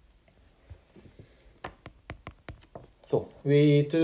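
A stylus taps and scratches on a tablet's glass.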